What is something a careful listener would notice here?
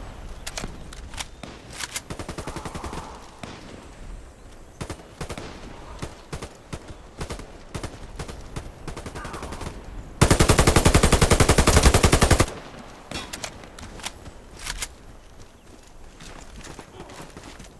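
Distant gunshots crack in sporadic bursts.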